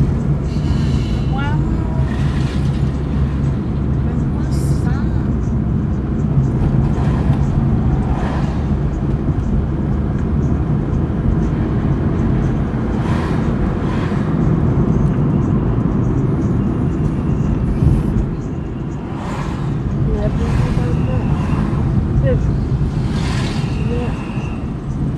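A car engine hums steadily with low road rumble from inside a moving car.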